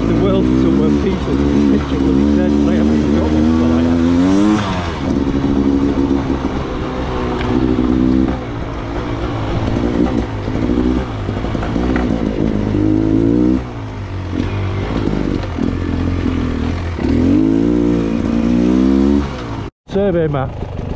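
A dirt bike engine revs and buzzes up close, rising and falling in pitch.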